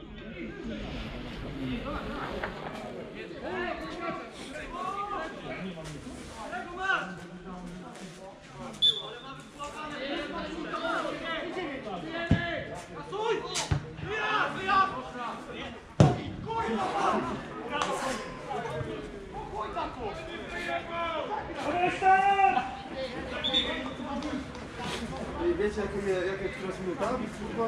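A football is kicked with a dull thump.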